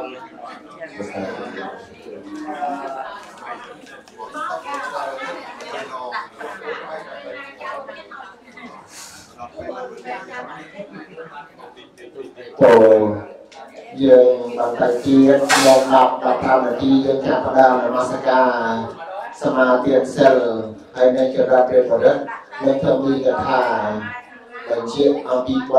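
Adult men and women talk casually nearby.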